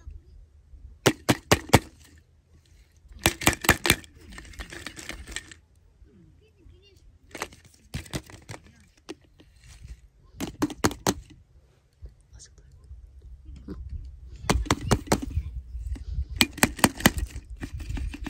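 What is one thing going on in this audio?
Hollow plastic eggs click and tap against each other in quick bursts.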